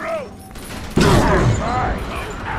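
A heavy blast booms.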